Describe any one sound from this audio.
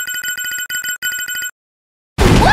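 Electronic beeps tick rapidly as a score counts up.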